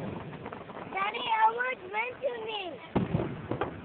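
Firework rockets whistle as they shoot up.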